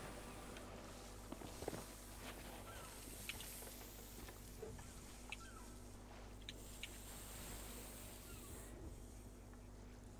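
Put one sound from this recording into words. Leaves rustle and brush as something pushes through dense plants.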